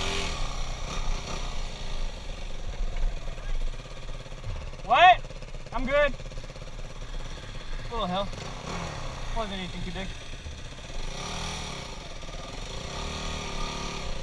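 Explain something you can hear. A motorbike engine rumbles up close.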